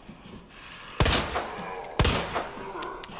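A pistol fires two loud shots.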